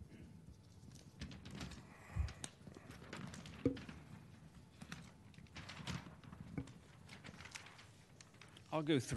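Large paper sheets rustle and crinkle.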